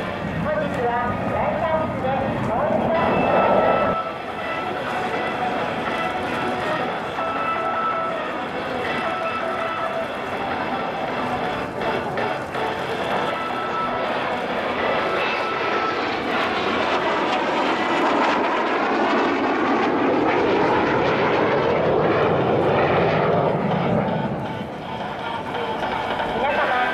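A jet engine roars overhead, swelling loudly as the aircraft passes close and the pitch sweeps down.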